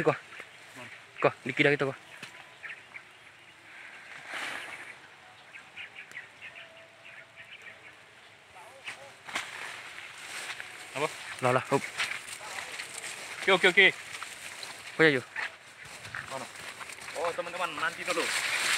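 Tall grass rustles as someone pushes through it on foot.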